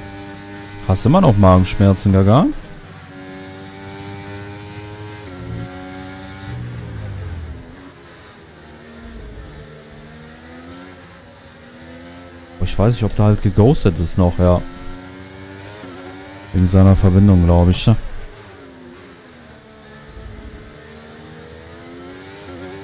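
A race car engine whines steadily, rising and falling in pitch as gears shift.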